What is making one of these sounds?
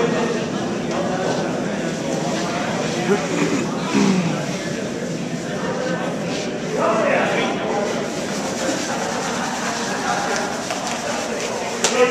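Brooms sweep briskly across ice.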